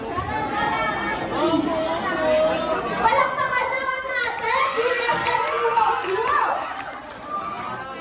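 A young woman speaks through a microphone over loudspeakers.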